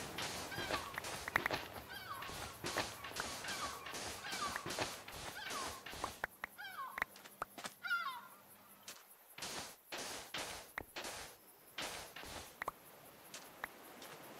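Stone blocks crunch and break in quick repeated hits.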